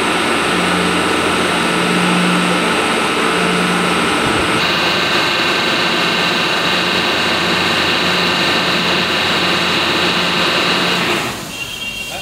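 A machine motor hums and whirs loudly and steadily, then stops.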